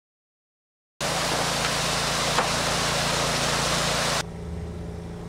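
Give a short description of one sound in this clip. Water splashes and gurgles from a fountain.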